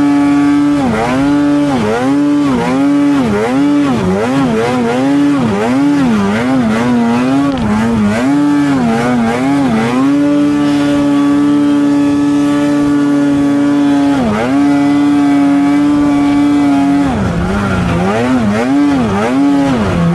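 A snowmobile engine roars loudly, revving up and down constantly.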